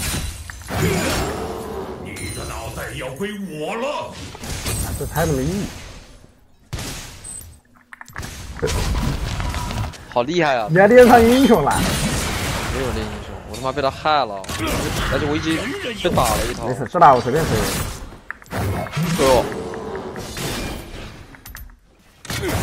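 Video game spell effects whoosh and clash during a fight.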